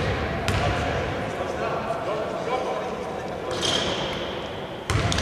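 Basketballs bounce on a hardwood floor in a large echoing hall.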